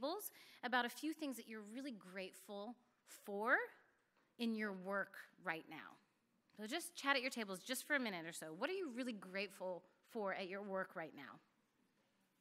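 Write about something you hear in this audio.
A woman speaks with emotion through a microphone.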